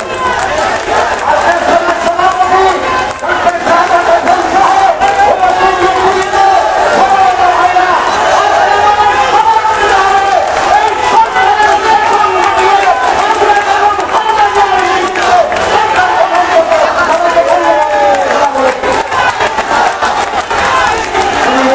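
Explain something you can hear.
A large crowd of men chants slogans loudly in unison outdoors.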